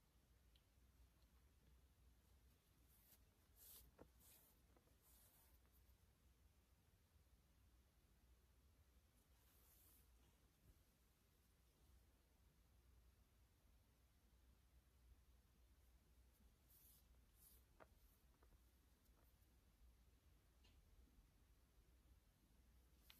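Yarn rustles softly as a crochet hook works it.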